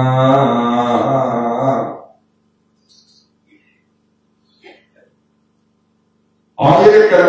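An elderly man speaks with animation through a microphone and loudspeakers.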